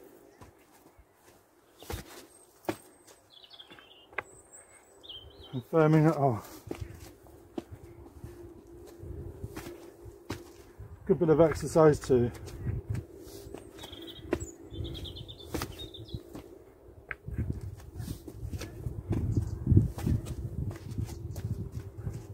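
Footsteps tread heavily on soft soil.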